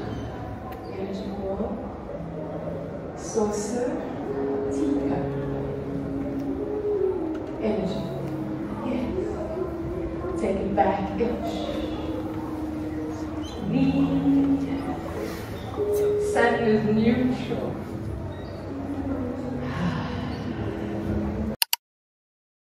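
Music plays loudly over speakers with a steady beat.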